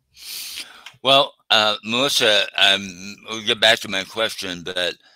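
A man speaks with animation through a headset microphone on an online call.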